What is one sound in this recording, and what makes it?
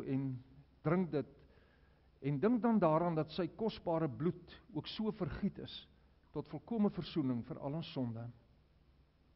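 An elderly man speaks calmly in a reverberant hall.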